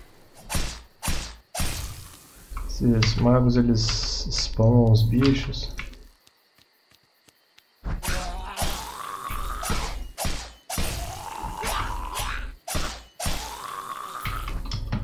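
Blades clash and strike in quick blows.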